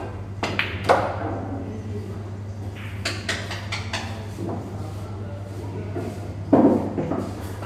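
Billiard balls clack together and roll across a table.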